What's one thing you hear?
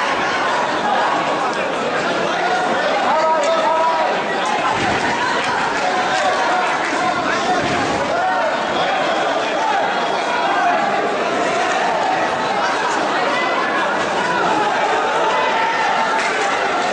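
A crowd murmurs and shouts throughout a large echoing hall.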